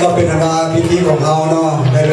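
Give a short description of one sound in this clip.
A crowd of people chatters at tables.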